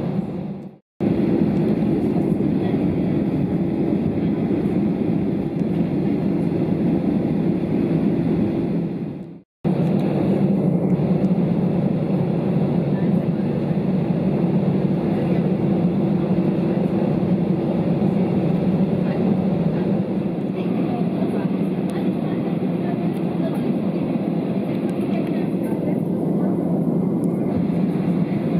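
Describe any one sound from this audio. A jet engine rumbles steadily from inside an aircraft cabin.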